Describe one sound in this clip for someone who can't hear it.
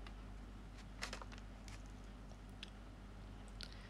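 A young woman makes soft smacking sounds with her lips close to a microphone.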